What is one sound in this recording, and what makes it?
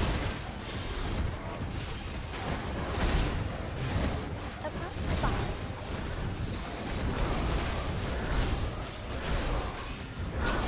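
Magic blasts boom with deep rumbles.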